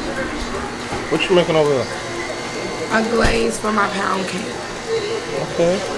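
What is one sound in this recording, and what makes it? An electric stand mixer whirs as it beats.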